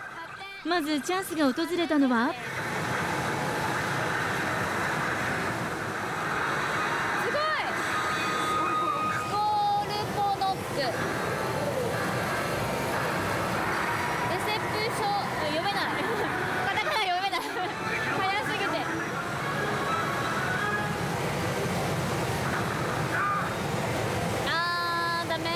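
Steel balls rattle and clatter through a pachinko machine.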